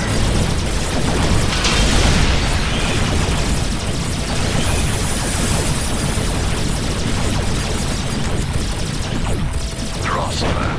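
Gunfire and laser blasts crackle steadily in a battle.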